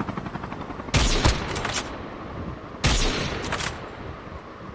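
Loud rifle shots crack, each followed by a short echo.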